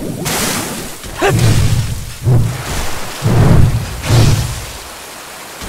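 A sword slashes and strikes a beast with heavy thuds.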